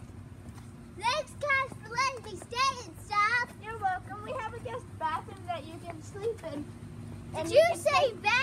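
Young children talk and shout excitedly close by.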